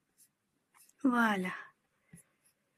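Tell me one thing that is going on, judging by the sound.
A middle-aged woman says a short phrase up close to a microphone.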